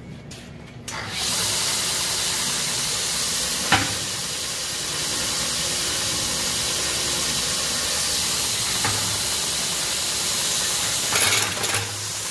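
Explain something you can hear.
A belt grinder runs with a loud, steady whir and hiss.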